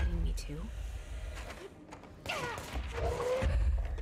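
A heavy metal barrel crashes against a wooden wall.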